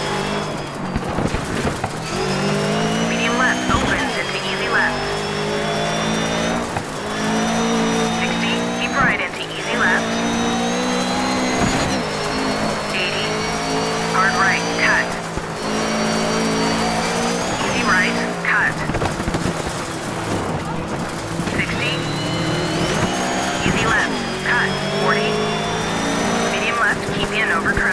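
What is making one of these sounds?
A rally car engine revs hard, rising and dropping in pitch with each gear change.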